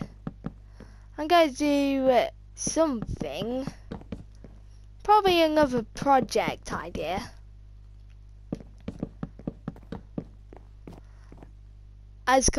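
Wooden blocks are placed with short, soft knocks.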